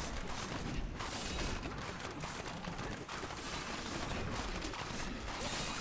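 Game spell effects crackle and boom in a dense, steady battle din.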